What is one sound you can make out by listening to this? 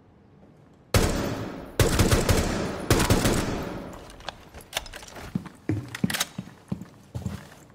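A rifle fires in loud rapid bursts indoors.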